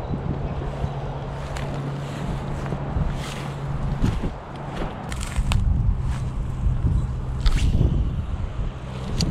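Wind blows outdoors and rumbles against the microphone.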